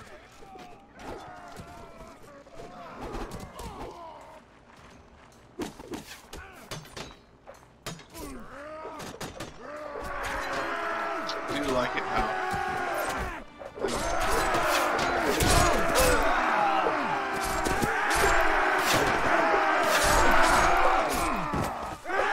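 Metal weapons clash and clang repeatedly.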